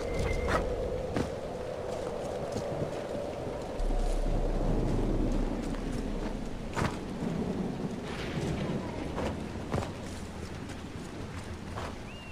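Footsteps tread over grass and stone.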